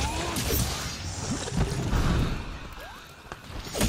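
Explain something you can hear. A blade slashes and clangs against a creature.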